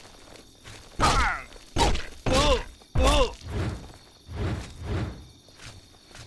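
Heavy blows land in a close fight.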